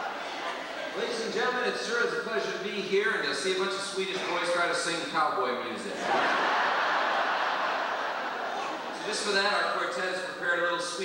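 A man speaks loudly to an audience in a large echoing hall.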